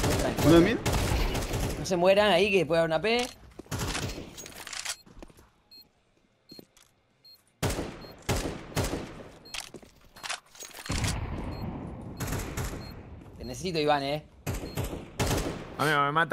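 A rifle fires short bursts of shots.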